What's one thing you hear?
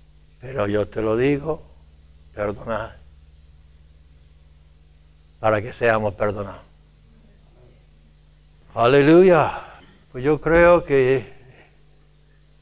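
An elderly man speaks with emphasis into a microphone, in short bursts with pauses.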